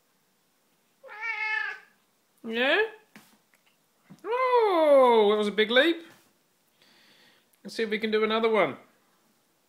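A cat meows loudly and insistently, close by, in long drawn-out cries.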